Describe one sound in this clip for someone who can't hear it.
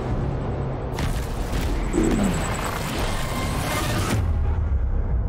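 A loud rushing blast roars and fades.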